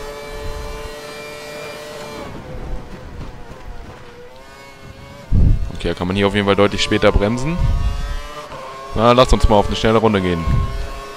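A racing car engine screams and shifts up through the gears.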